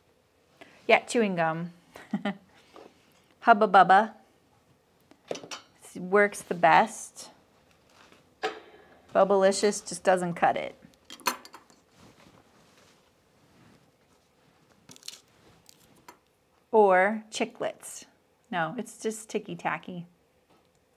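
An elderly woman talks calmly and clearly into a microphone, in short phrases.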